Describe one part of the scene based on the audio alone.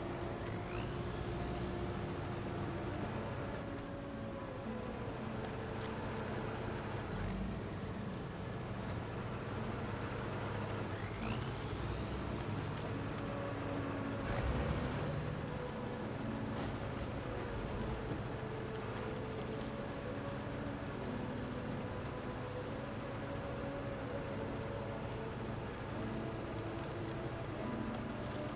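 A heavy truck engine rumbles and strains steadily.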